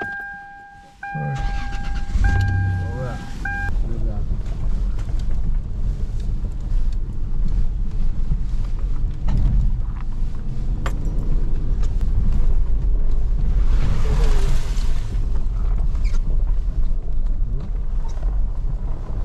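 A car engine rumbles at low speed.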